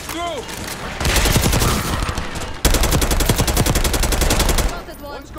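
A rifle fires rapid bursts, loud and close.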